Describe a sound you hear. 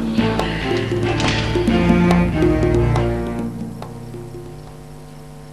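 Music plays and fades out.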